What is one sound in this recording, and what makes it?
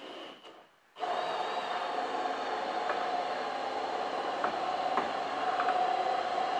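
An electric drill whirs steadily.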